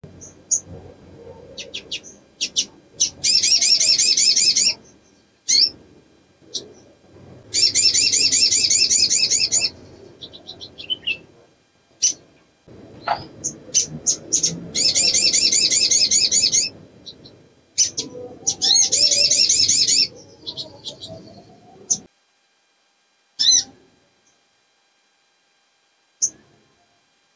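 A small bird sings loud, rapid trilling bursts with sharp chirps between them.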